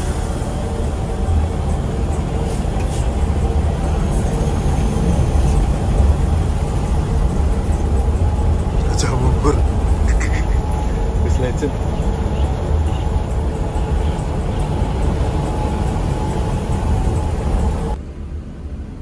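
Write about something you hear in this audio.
Tyres roar on the road surface at speed.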